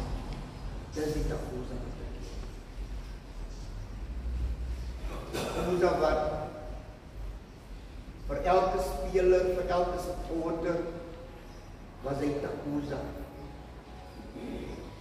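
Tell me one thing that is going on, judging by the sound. A middle-aged man speaks slowly and solemnly through a microphone in an echoing hall.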